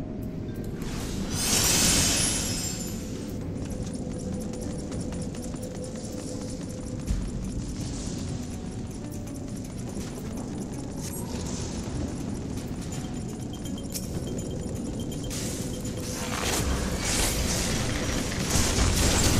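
Dramatic music plays steadily.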